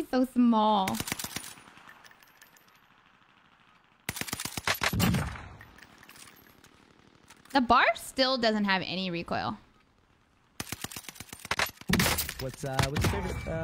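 Gunshots crack from a game.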